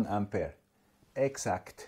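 A button clicks once.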